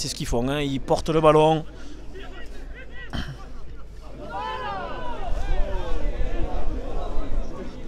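Men shout loudly across an open outdoor field.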